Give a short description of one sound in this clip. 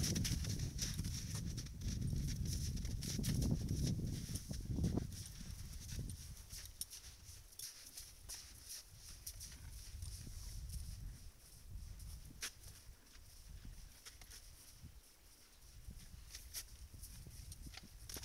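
A horse crunches and tears at dry grass close by.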